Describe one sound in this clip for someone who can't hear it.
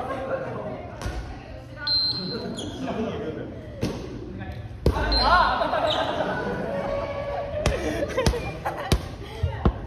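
A volleyball thuds off players' arms.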